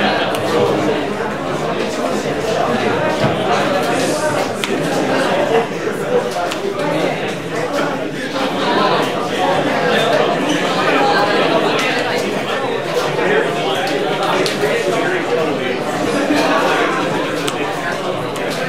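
Playing cards slap softly onto a table mat.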